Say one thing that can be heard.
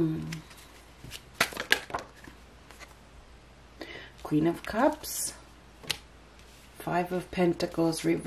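Playing cards slide and tap softly onto a table.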